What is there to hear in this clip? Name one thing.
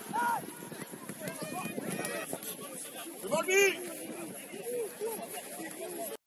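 Young players shout and call to each other across an open outdoor pitch.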